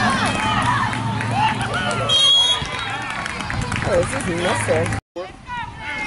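A crowd of boys and adults shouts and cheers outdoors.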